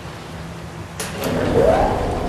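A button clicks.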